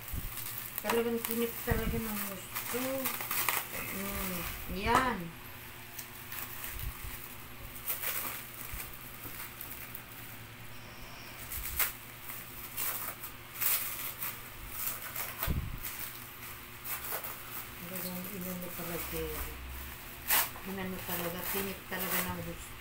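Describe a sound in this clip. Thin plastic crinkles and rustles as hands handle it.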